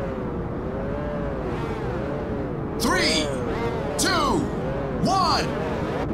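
A sports car engine idles and revs with a wavering hum.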